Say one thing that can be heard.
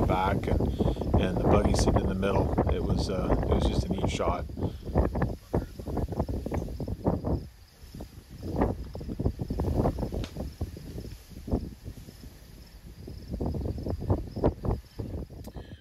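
Wind gusts roughly across the microphone outdoors.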